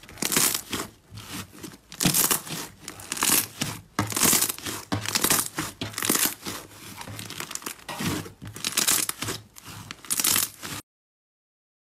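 Hands squish and knead soft slime, with wet crackling and popping.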